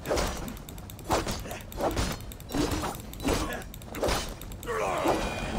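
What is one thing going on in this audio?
Swords clash and strike in quick blows.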